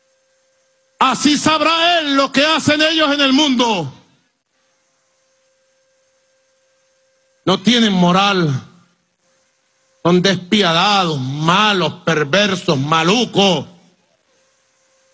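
A man speaks forcefully into a microphone, with pauses between phrases.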